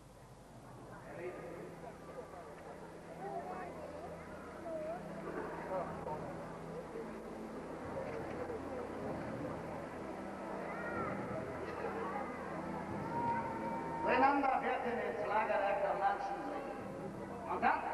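Men shout and call out excitedly nearby.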